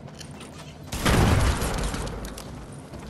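Gunshots ring out in a game.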